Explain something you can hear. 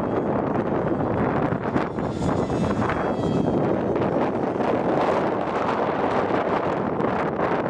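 A jet engine roars steadily overhead.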